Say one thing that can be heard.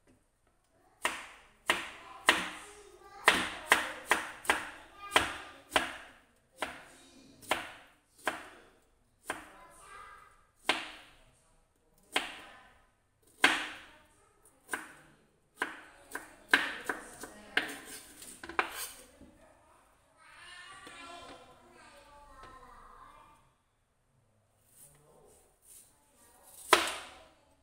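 A knife chops through vegetables with sharp, repeated knocks.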